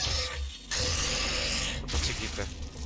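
A loud explosion bursts with a roaring, crackling blast.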